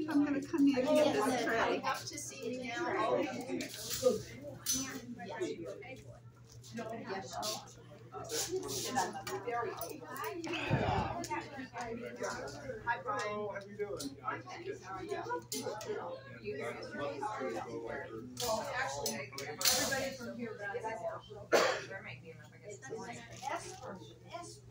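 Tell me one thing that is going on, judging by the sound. A crowd of adults chatters nearby.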